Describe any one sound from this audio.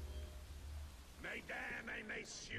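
A man announces loudly through a loudspeaker in a large echoing hall.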